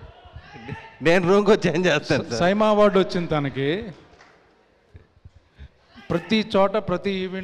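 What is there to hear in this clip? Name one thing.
A man speaks loudly into a microphone through loudspeakers.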